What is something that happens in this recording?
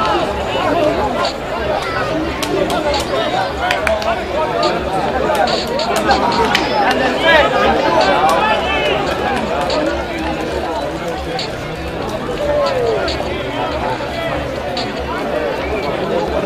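Young men call out to each other across an open field.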